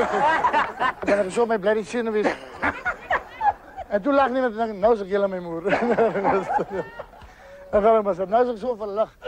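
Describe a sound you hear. A middle-aged man talks loudly with animation.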